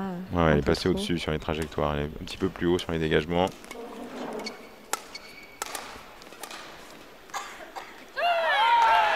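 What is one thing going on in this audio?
A shuttlecock is struck back and forth with rackets.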